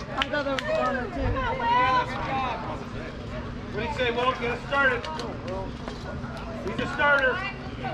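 Young players and men shout and cheer across an open field.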